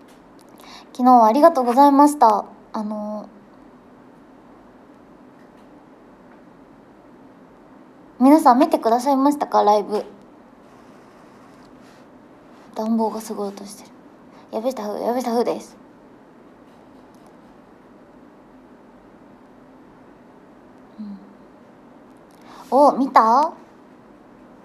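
A young woman talks softly and casually, close to a microphone, in short bursts.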